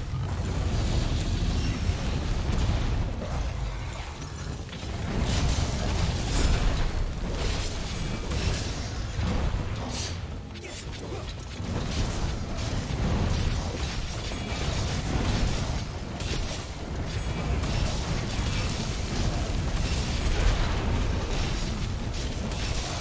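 Fiery explosions boom and crackle again and again.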